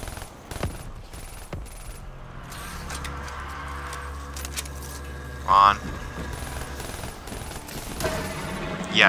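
Gunshots ring out, a few at a time.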